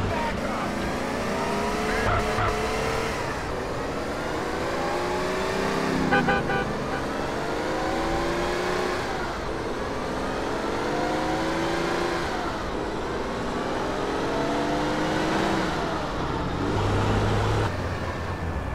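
A car engine revs up and down repeatedly as it shifts through gears.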